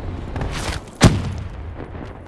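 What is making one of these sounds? A submachine gun fires a burst in a video game.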